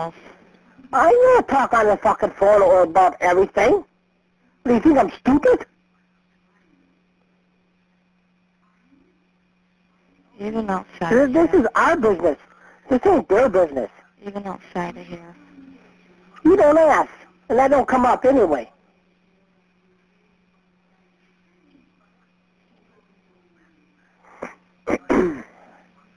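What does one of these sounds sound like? A man talks over a phone line.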